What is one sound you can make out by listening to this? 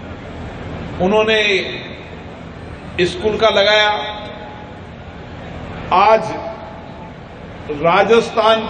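A man speaks forcefully into a microphone over a loudspeaker, in short bursts with pauses.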